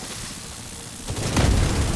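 A heavy machine gun fires rapidly.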